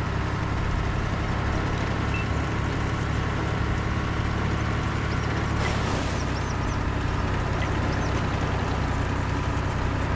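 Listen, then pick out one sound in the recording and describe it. A tank engine rumbles steadily with a low drone.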